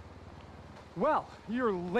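A man speaks up close.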